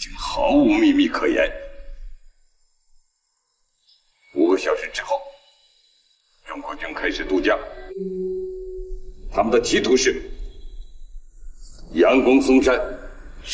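A middle-aged man speaks firmly and forcefully.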